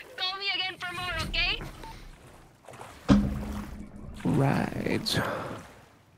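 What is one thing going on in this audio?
Water splashes and sloshes.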